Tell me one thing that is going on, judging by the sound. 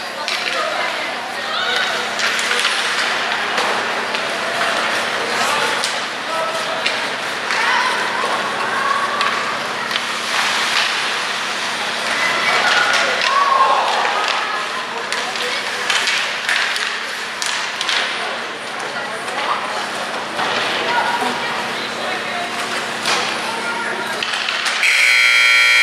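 Spectators shout and cheer in an echoing arena.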